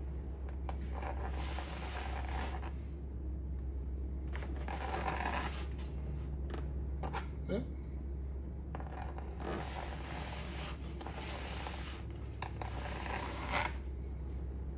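A metal spatula scrapes and smooths frosting in soft bursts.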